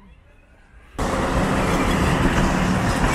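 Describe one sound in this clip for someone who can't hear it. A tram rumbles past close by.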